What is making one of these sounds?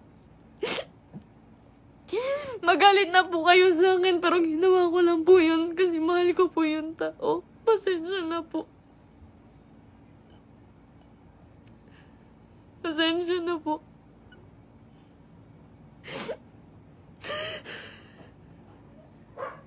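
A young woman sniffles and breathes sharply between cries.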